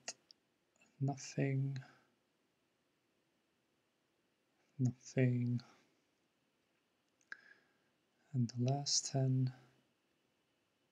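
A man talks with animation into a close microphone, in short bursts.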